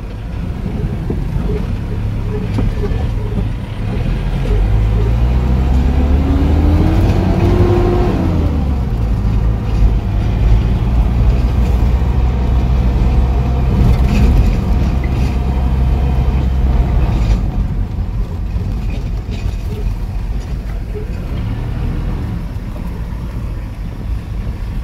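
Tyres rumble and jolt over a rough dirt road.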